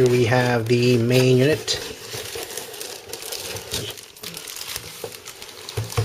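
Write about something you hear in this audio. Cardboard packaging scrapes and rustles as something is slid out of it.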